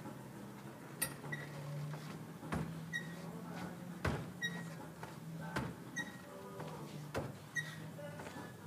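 A metal bar clicks and knocks as a man swings from it.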